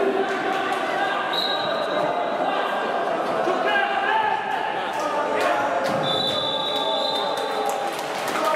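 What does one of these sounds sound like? Spectators chatter and call out in a large echoing sports hall.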